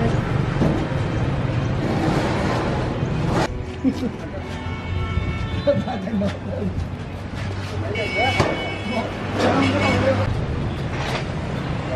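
A large metal tank thumps and rumbles as men shift it onto a truck.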